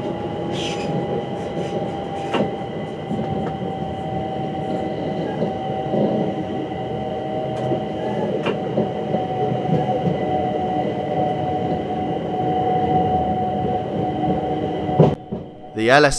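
A train rumbles steadily along the rails with a constant hum.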